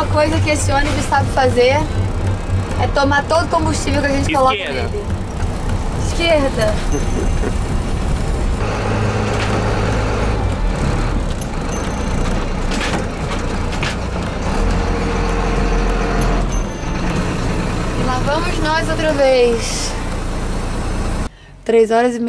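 A large vehicle's engine rumbles steadily.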